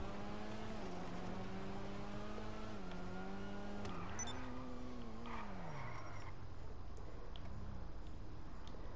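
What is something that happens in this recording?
A sports car engine hums at speed, then its pitch drops as it slows.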